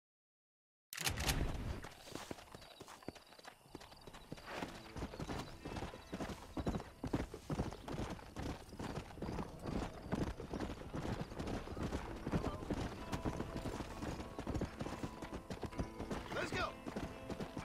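Horse hooves clop steadily on dry ground.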